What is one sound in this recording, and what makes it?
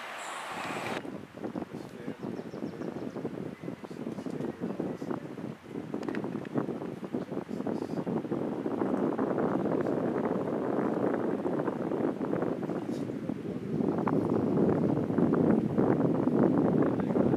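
Water laps and splashes against a rocky shore.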